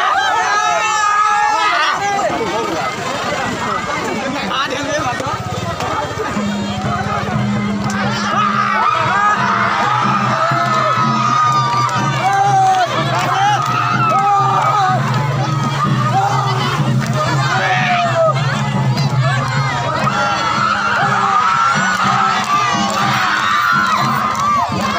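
A crowd of women sings together loudly outdoors.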